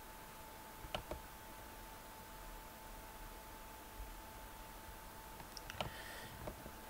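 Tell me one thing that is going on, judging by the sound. A computer game gives a short click as a chess piece moves.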